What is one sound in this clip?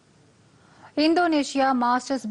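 A woman reads out the news clearly through a microphone.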